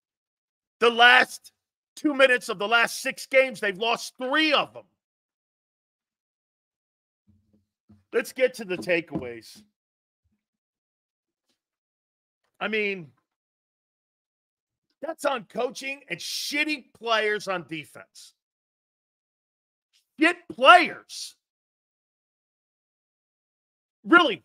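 A middle-aged man talks loudly and with animation into a close microphone, in bursts with pauses.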